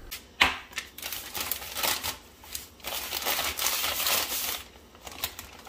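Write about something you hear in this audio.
A plastic bag crinkles as a hand squeezes it.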